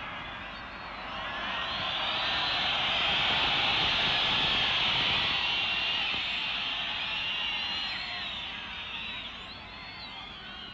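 A large stadium crowd roars and cheers, swelling and then slowly fading.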